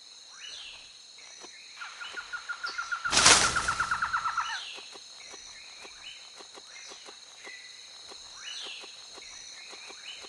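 A large cat's paws pad softly on the ground.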